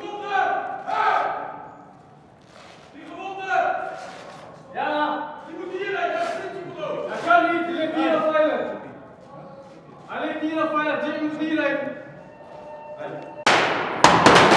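A man speaks quietly and tensely close by.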